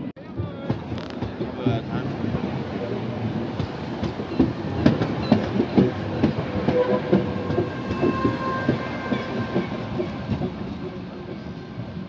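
Tram wheels clack over rail joints.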